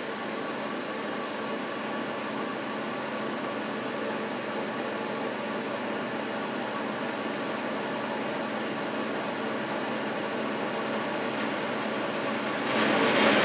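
A cutting tool scrapes against turning metal, growing louder and harsher toward the end.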